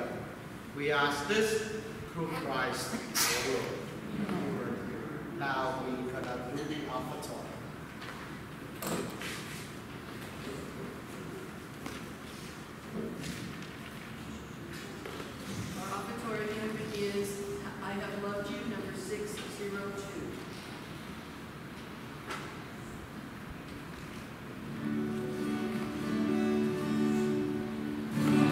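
A man chants and sings in a large echoing room.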